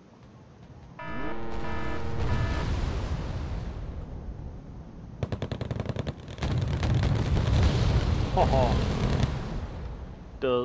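Explosions boom and rumble in the distance.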